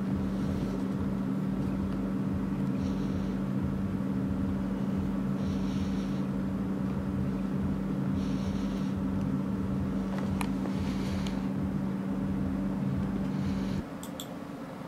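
A dog breathes slowly and noisily in its sleep.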